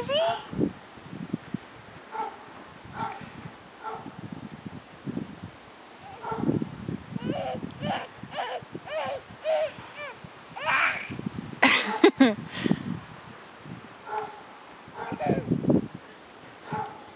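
Snow crunches softly as toddlers crawl through it.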